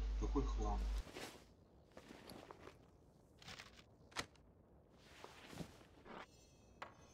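Short soft clicks sound now and then as items are moved around.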